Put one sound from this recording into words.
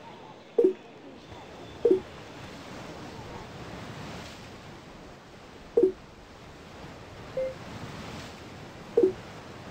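Short electronic menu blips sound as selections are made.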